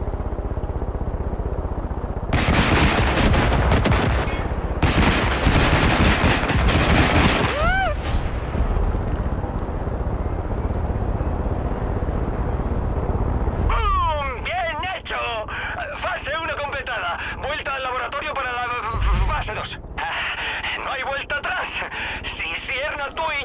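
A helicopter engine drones steadily with a thudding rotor.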